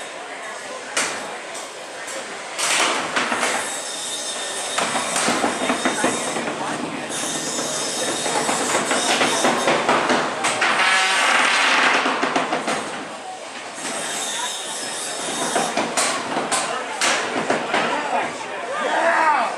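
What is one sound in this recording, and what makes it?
Metal robots clash and bang against each other.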